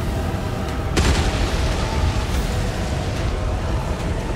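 Debris rumbles and falls.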